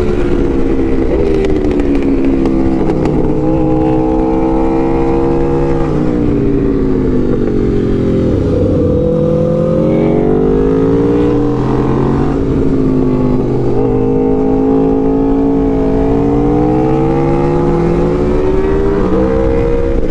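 A motorcycle engine drones loudly up close, its pitch rising and falling with shifts of speed.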